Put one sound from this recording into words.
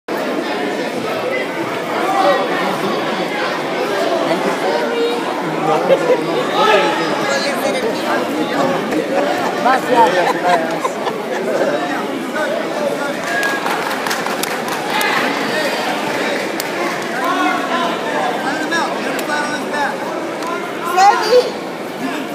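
A large crowd murmurs and shouts in a big echoing hall.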